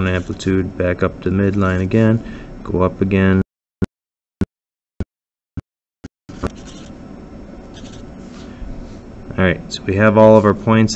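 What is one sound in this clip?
A felt-tip marker taps and squeaks on paper.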